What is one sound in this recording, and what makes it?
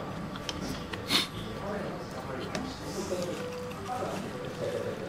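Chopsticks clink against a plate of noodles.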